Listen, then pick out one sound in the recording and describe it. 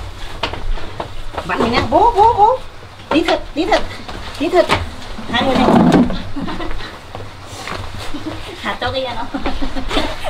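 Bamboo poles knock and clatter as people climb onto them.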